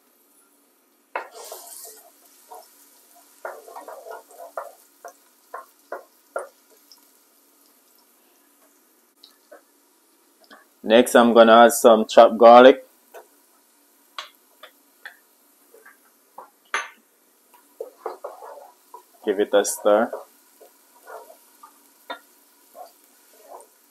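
A spatula scrapes and stirs food in a pot.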